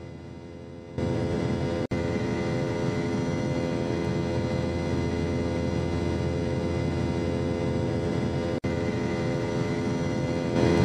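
Turbofan engines of a jet airliner roar louder from close by.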